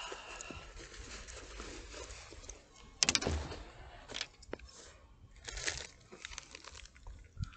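Clothing rustles and scrapes against a microphone.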